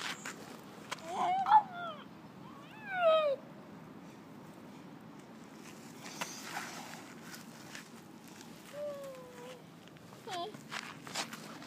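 A young boy calls out in a high voice close by.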